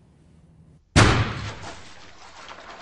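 A balloon bursts with a loud pop and a splash of water.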